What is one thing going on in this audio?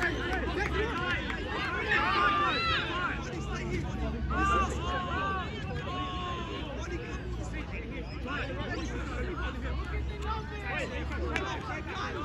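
Players and spectators shout and call out across an open field.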